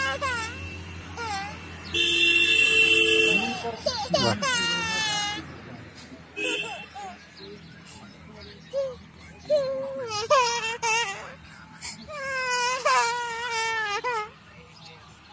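A toddler cries and wails loudly close by.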